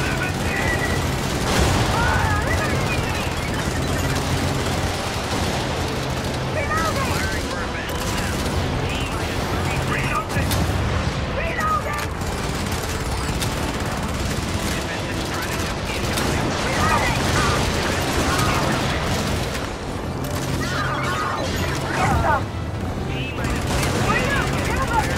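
Laser weapons zap and whine.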